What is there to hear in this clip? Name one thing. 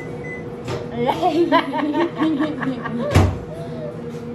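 A young girl laughs loudly up close.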